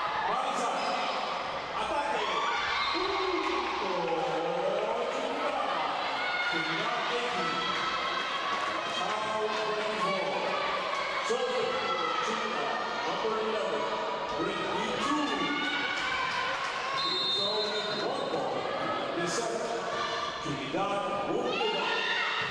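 Young women shout and call out across a large echoing hall.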